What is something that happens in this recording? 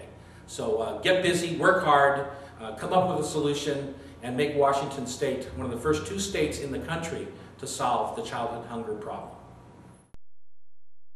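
A middle-aged man speaks with animation into a microphone close by.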